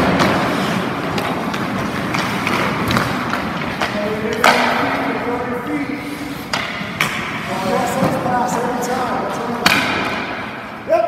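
Hockey skates scrape across ice in an echoing indoor rink.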